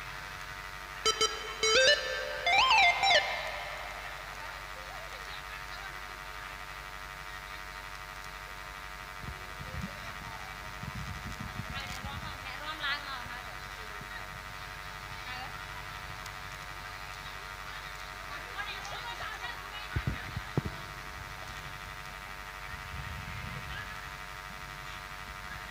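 A young girl speaks softly into a microphone through loudspeakers.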